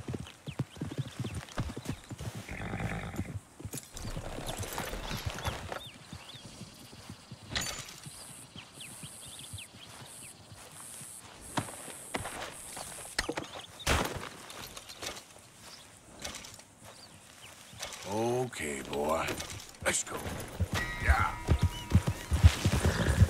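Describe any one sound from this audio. A horse's hooves thud on soft ground at a trot.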